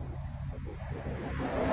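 A car engine roars as a car speeds away.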